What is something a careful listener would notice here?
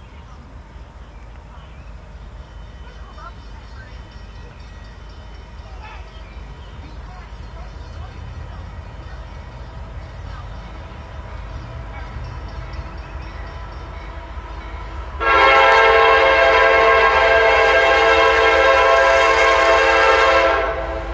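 A diesel locomotive rumbles as it approaches, growing louder.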